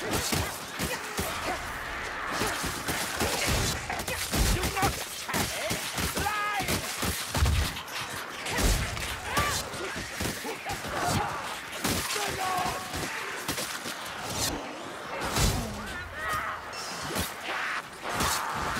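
Blades hack and slash into flesh with wet, heavy thuds.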